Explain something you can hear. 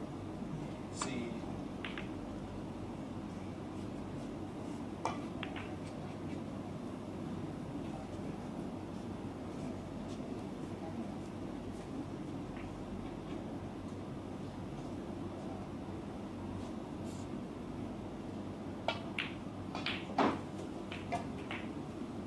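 Snooker balls knock against each other and the cushion.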